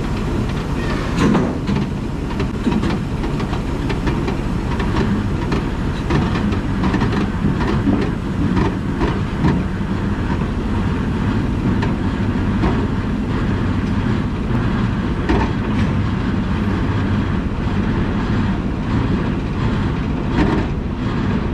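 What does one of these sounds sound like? A worker knocks and clinks metal parts close by.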